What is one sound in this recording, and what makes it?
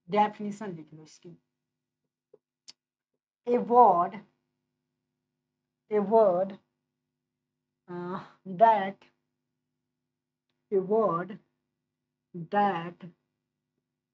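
A young man speaks calmly in short phrases, close to a microphone.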